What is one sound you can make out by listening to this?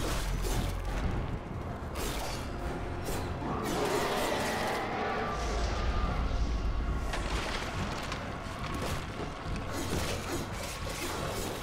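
Blows and slashes strike bodies in a fight, with heavy thuds.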